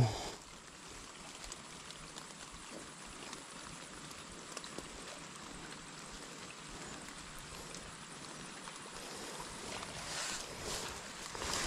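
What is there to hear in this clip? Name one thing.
Grass and leaves rustle close by as hands push through plants.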